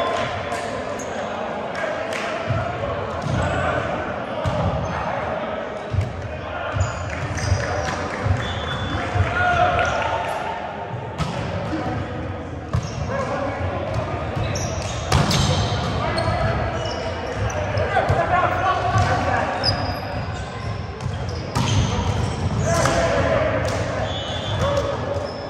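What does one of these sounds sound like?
Young men talk and call out across a large echoing hall.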